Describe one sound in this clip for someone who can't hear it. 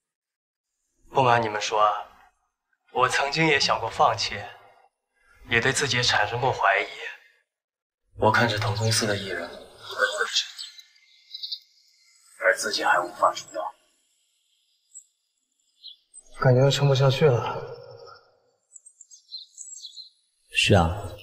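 A young man speaks calmly in a close, quiet voice-over.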